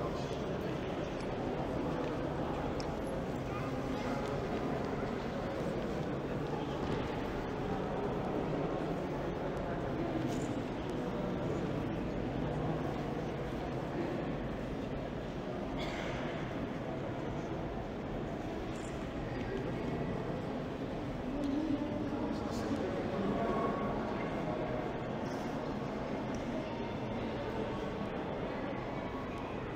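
A crowd of people murmurs in a large echoing hall.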